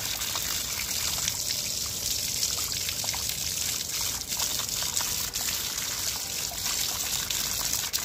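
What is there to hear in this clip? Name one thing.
Water splashes from a tap onto the ground.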